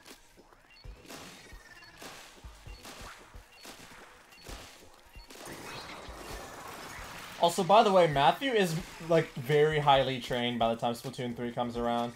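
Paint guns fire in quick wet squirts.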